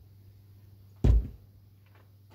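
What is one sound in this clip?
A heavy log drops with a dull thud onto a rubber tire.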